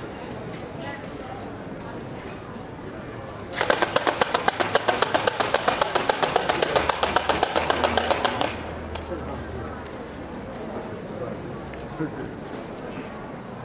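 Many footsteps shuffle on stone paving.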